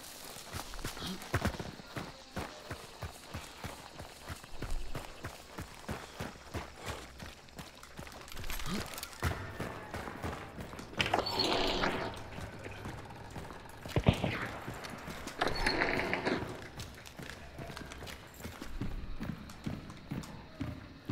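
Footsteps crunch steadily over grass and dirt, then thud on wooden boards.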